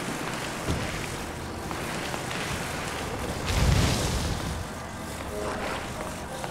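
A soft magical hum drones steadily.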